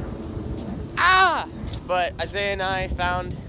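A young man speaks loudly with animation close by.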